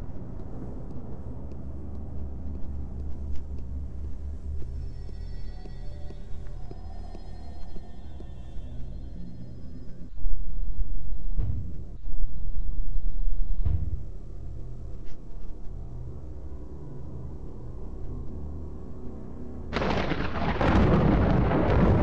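Soft footsteps pad across a hard floor.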